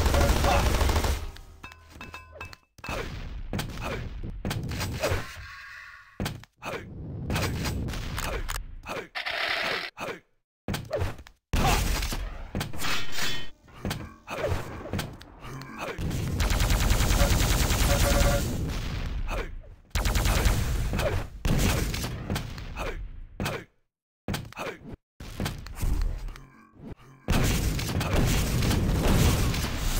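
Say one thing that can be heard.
Gunshots from a video game blast in quick bursts.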